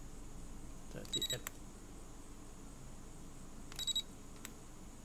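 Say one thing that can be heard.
An electronic thermometer beeps in short bursts.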